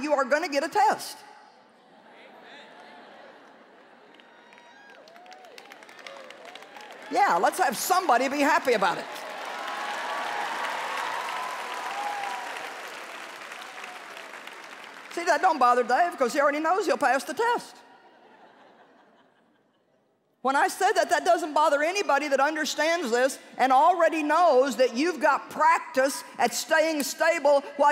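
A middle-aged woman speaks with animation through a microphone in a large hall.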